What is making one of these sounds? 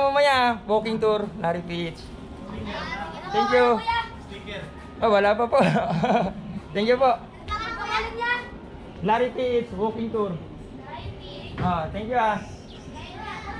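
Children talk and call out loudly nearby, outdoors.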